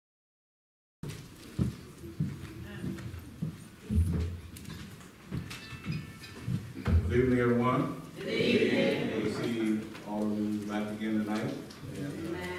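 A man speaks through a microphone in a large echoing hall.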